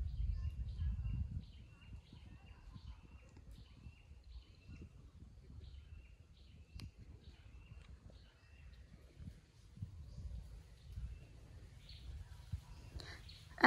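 Wind blows outdoors, rustling palm fronds and buffeting the microphone.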